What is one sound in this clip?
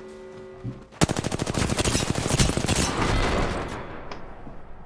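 Rapid gunfire rattles loudly in a video game.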